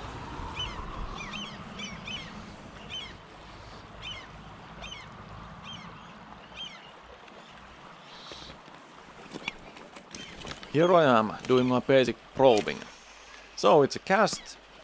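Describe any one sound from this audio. A river flows and gurgles over stones nearby.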